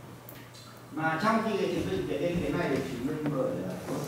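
A man speaks calmly, lecturing in an echoing room.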